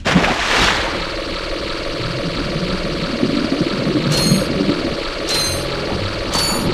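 Bubbles gurgle and burble underwater.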